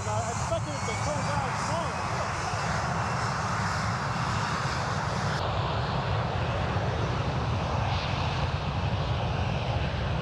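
Wind buffets and roars loudly past the microphone outdoors.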